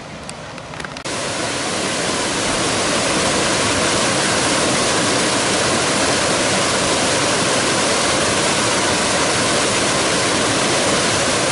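Whitewater rapids roar loudly.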